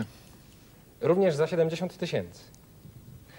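A man reads out calmly into a microphone.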